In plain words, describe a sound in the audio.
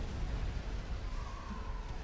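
Laser beams fire with a buzzing hum.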